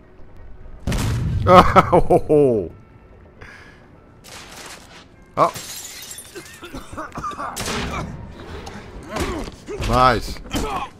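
A man shouts with effort.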